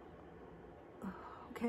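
A woman speaks quietly close by.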